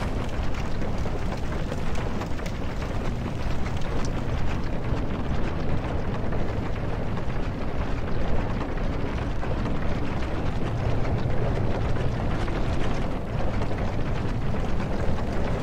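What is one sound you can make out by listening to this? Armoured footsteps thud on creaking wooden planks.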